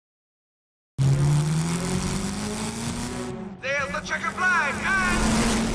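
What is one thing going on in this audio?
A race car engine revs up and speeds away.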